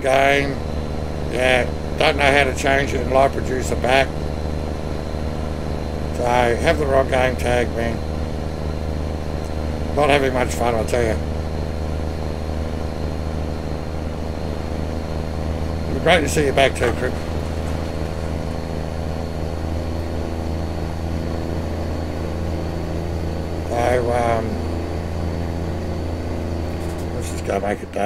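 A truck engine hums steadily at low pitch.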